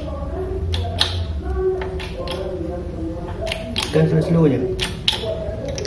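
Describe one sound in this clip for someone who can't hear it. A hand pumps a hydraulic jack lever with metallic clicks.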